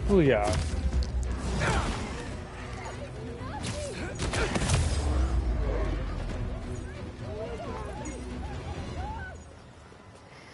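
A deep rumble booms and slowly dies away.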